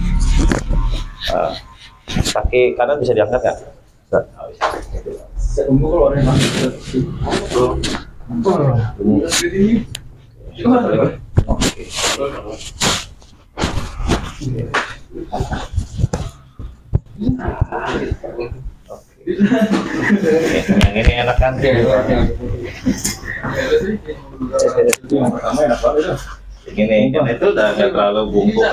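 Another young man talks with animation nearby.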